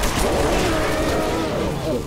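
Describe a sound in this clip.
An explosion bursts with a roar.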